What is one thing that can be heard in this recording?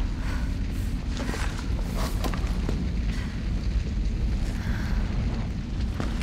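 Flames crackle and roar close by.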